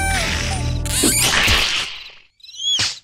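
A small cartoon creature shrieks in a squeaky high voice.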